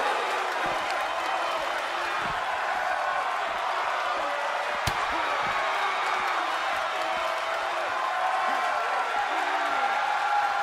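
A large crowd cheers and shouts loudly throughout.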